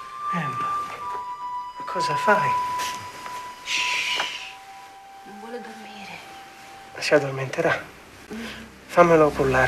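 A man speaks softly and warmly nearby.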